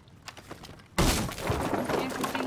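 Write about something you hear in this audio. Wooden boards splinter and crack under a heavy blow.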